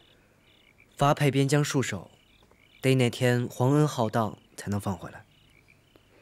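A young woman answers calmly and at length.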